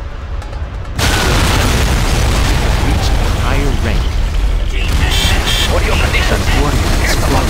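A huge explosion booms and rumbles.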